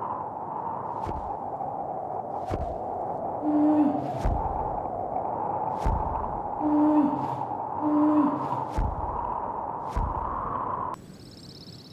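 Wind rushes loudly and steadily.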